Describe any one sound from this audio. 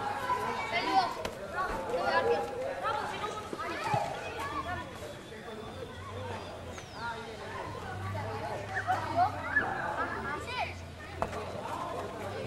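A football thuds as a boy kicks it.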